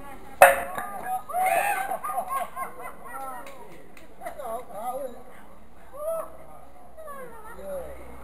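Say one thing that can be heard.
Elderly men and women chat and call out nearby outdoors.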